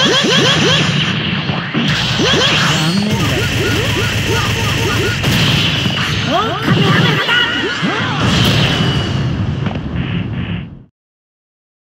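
Energy blasts roar and crackle in a fast fight.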